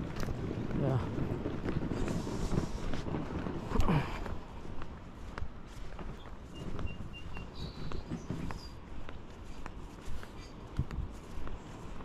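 Footsteps crunch on soft sand.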